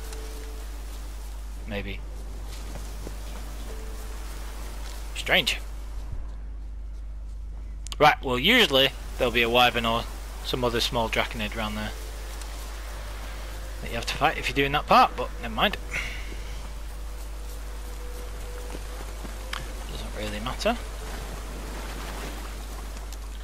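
Footsteps tread steadily through grass and over rocky ground.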